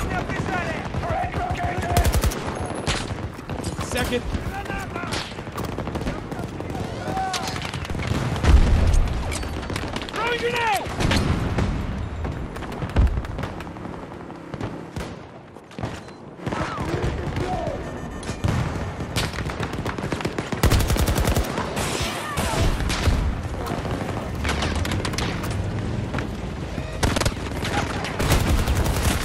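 An explosion booms heavily.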